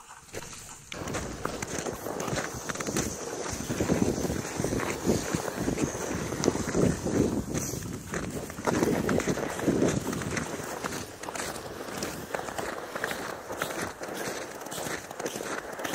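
Boots crunch steadily through snow.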